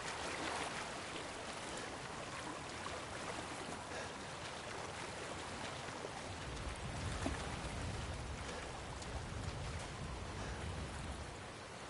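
Footsteps crunch slowly over snow and undergrowth.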